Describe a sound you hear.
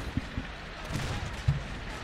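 A tank cannon fires a single loud shot.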